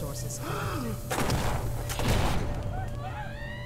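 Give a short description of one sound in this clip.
A gun fires a loud burst of shots.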